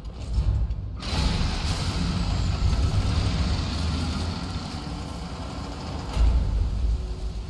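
Heavy doors grind and rumble open, echoing in a large hall.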